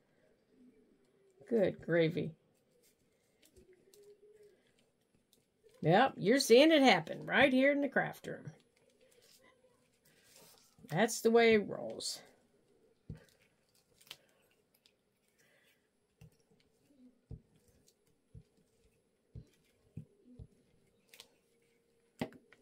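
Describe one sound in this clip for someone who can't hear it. Paper rustles and creases softly as hands fold and press it flat.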